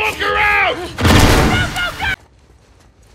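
A loud blast bursts close by.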